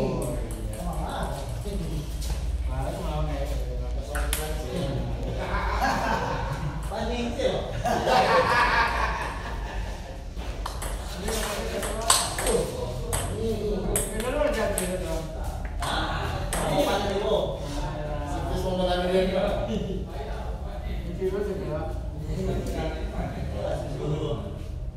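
Young men talk and laugh casually nearby.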